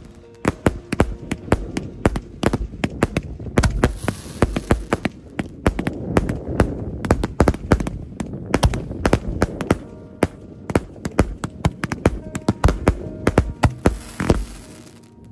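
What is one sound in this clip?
Fireworks explode in rapid loud bangs and crackles.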